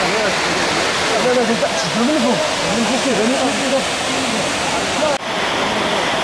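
Men talk casually close by.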